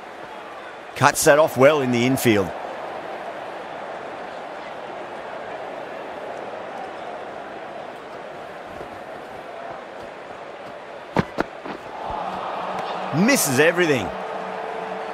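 A crowd cheers loudly in short bursts.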